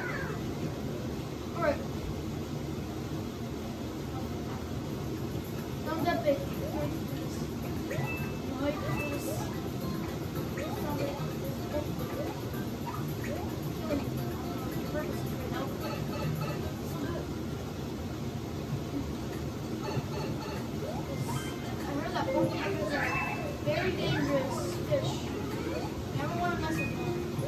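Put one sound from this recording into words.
Upbeat game music plays through television speakers in a room.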